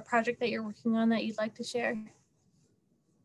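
A woman speaks calmly into a microphone over an online call.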